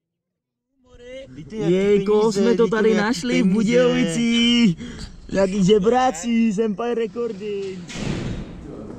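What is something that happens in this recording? A young man speaks with animation, close to the microphone.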